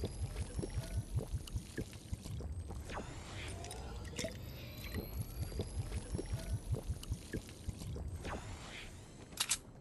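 A game character gulps down a drink with loud swallowing sounds.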